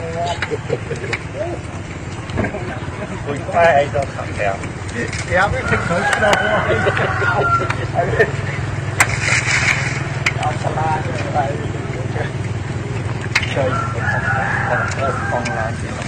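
Fire roars and crackles as vehicles burn.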